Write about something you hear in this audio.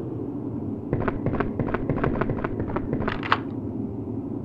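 Footsteps tap on stone steps.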